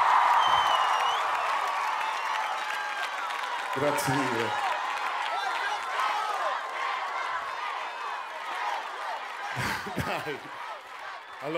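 A large crowd cheers and screams loudly outdoors, then slowly dies down.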